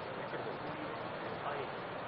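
A man speaks into a microphone, heard faintly through loudspeakers.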